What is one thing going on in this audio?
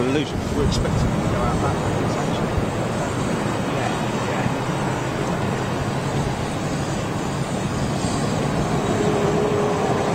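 Jet engines roar steadily as an airliner taxis nearby.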